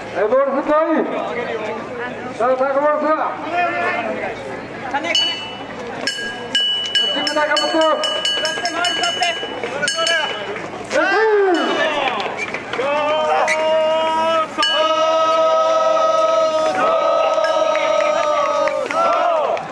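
A group of men shout and chant loudly together outdoors.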